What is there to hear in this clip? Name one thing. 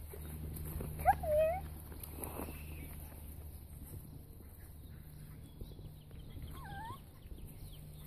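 A puppy yelps in short high squeals.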